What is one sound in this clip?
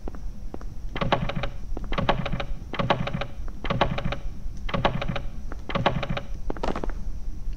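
Footsteps tread steadily on pavement.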